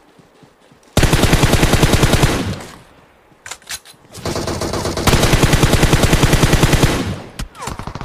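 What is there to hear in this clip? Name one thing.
A rifle fires rapid bursts of automatic shots.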